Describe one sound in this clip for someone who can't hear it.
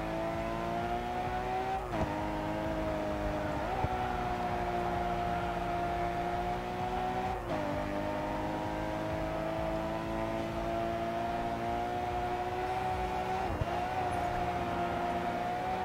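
A racing car engine roars at high revs, its pitch climbing steadily and dropping sharply with each gear change.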